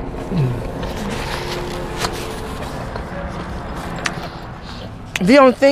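A woman murmurs an approving hum close by.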